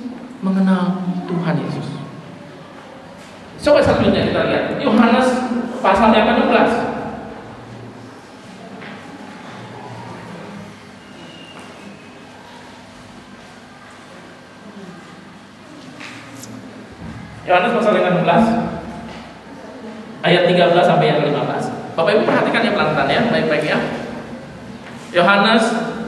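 A middle-aged man speaks with passion through a microphone and loudspeakers, in an echoing hall.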